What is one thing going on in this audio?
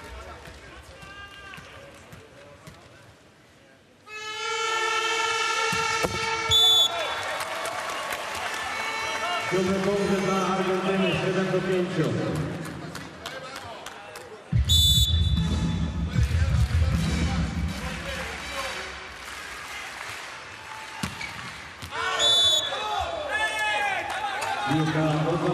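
A crowd cheers and chants in a large echoing arena.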